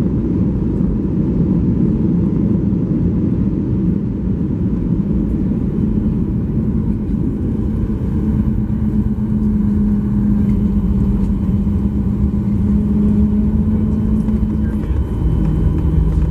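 Wind rushes loudly over an aircraft wing.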